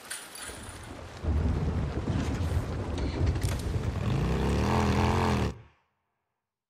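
A motorcycle engine rumbles and revs as the bike rides off.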